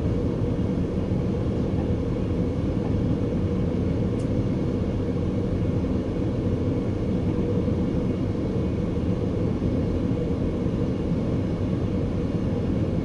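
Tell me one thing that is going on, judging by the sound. A train rumbles steadily along the rails from inside the cab.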